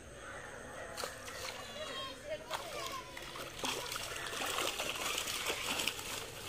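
Water streams and drips from a cast net lifted out of a pond.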